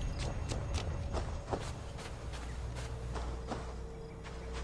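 Footsteps thud quickly through dry grass.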